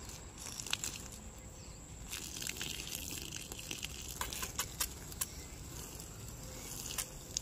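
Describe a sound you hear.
Water sprays from a garden hose and patters onto soil.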